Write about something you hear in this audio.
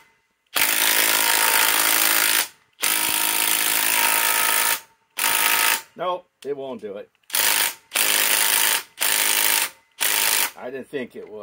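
A cordless drill whirs in bursts, boring into wood.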